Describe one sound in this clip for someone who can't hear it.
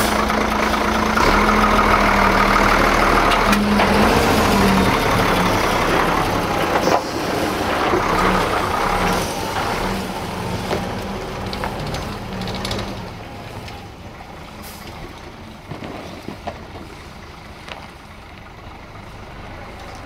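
A heavy truck engine rumbles close by and fades as the truck drives away.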